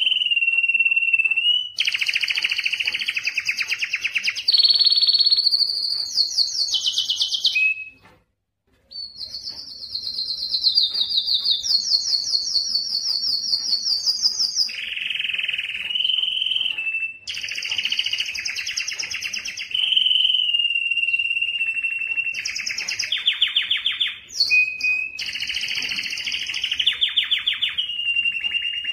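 A canary sings close by in long, fast trills and whistles.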